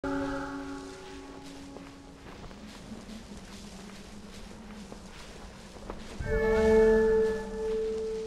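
Sand hisses softly as something slides over it.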